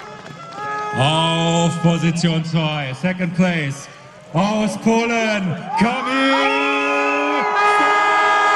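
Fans sing and shout in a crowd nearby.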